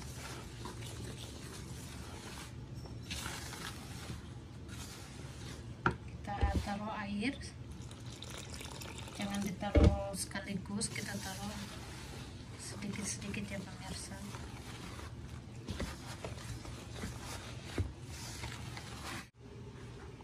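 A wooden spoon scrapes and stirs flour in a bowl.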